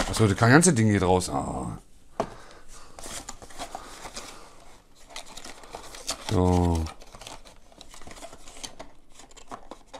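Cardboard packaging rustles and scrapes as hands open a box.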